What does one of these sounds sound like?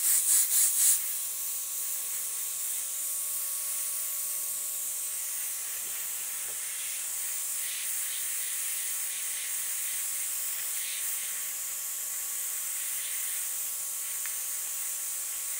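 An airbrush hisses steadily as it sprays paint.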